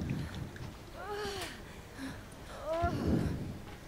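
A young woman cries out in distress.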